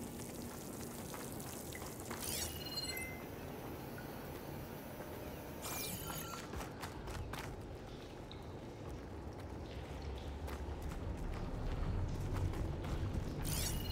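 Footsteps run over stone and gravel.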